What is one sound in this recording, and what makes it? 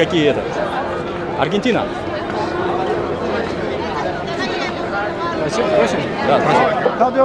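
A crowd chatters outdoors in the street.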